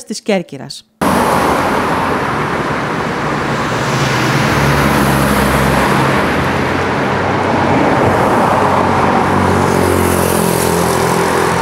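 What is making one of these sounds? Traffic rumbles past on a road outdoors.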